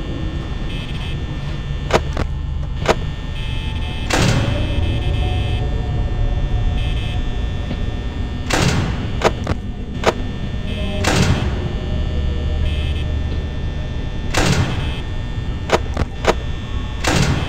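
An electric desk fan whirs.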